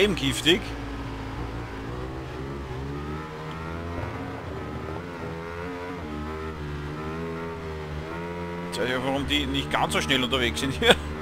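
A motorcycle engine roars at high revs, rising in pitch and dropping at each gear change.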